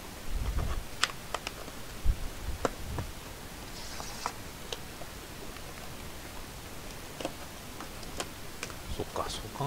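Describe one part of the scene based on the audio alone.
Card packs click and rustle as hands handle them.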